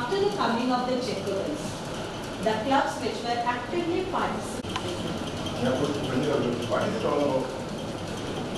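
A woman speaks to a class.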